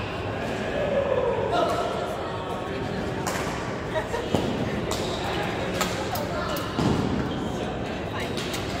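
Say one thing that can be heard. Voices of many people chatter in a large echoing hall.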